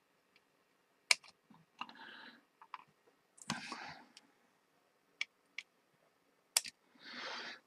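Wire cutters snip with sharp clicks.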